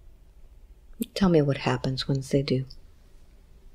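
A woman speaks briefly, close to a microphone.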